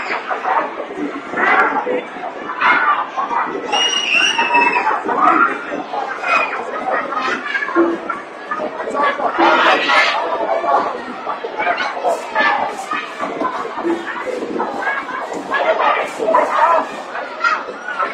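A crowd chatters in a busy, echoing indoor hall.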